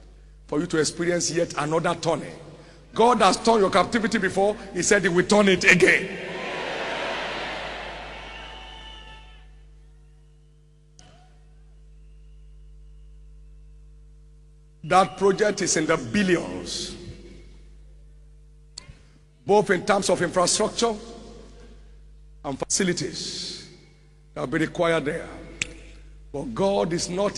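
A man preaches loudly and with passion through a microphone in a large echoing hall.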